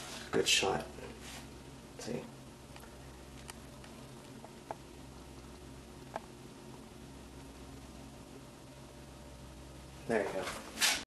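An amplifier hums low and steady.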